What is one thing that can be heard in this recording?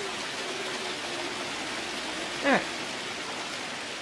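Water rushes and splashes in a steady roar.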